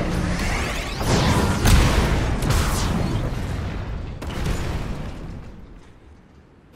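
A large shattering explosion bursts and rumbles.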